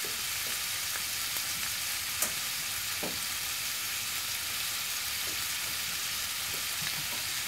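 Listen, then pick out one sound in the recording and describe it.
Chicken sizzles and crackles in a hot frying pan.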